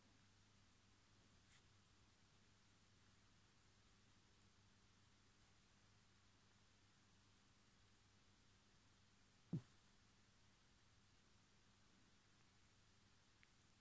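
A dog breathes softly while sleeping.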